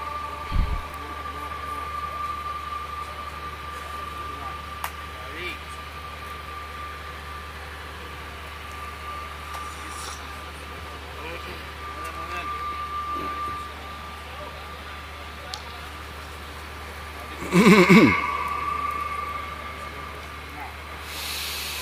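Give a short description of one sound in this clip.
A crowd of men murmurs quietly in the background.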